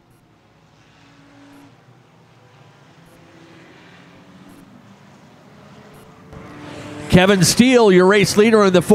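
Race car engines roar and drone around a track in the distance.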